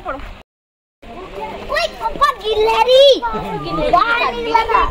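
A young girl talks close by.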